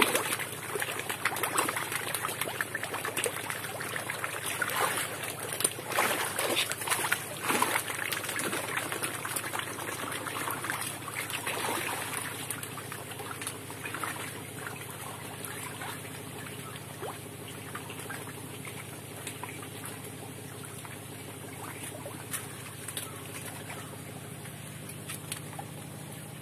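Water splashes and churns, loudest at first and calming down.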